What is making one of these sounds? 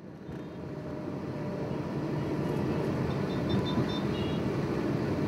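Motorbike engines hum close by.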